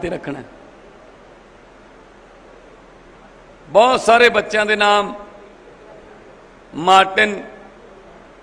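A young man speaks forcefully into a microphone in short bursts, with long pauses.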